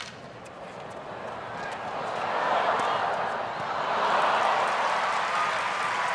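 A large crowd cheers and applauds, swelling loudly.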